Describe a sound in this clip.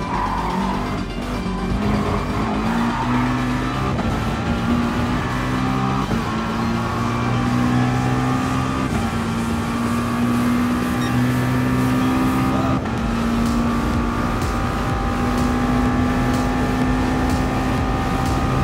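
A racing car engine roars loudly, its pitch climbing through each gear and dropping briefly at every gear change.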